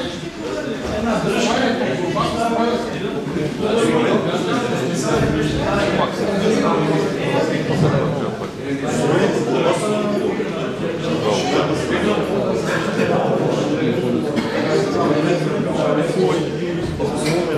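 A man speaks calmly and steadily nearby.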